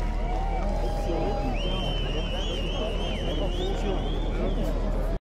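A large crowd of men and women chatters and calls out loudly outdoors.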